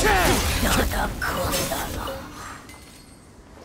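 Magic blasts crackle and boom in a battle.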